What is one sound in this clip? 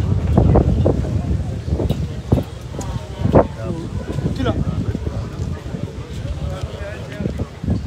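A second man speaks into a microphone, heard through a loudspeaker.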